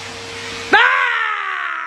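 A vacuum cleaner runs with a steady hum.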